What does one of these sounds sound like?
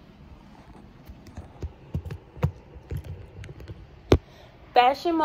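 Fingers rub and knock against a phone microphone close up.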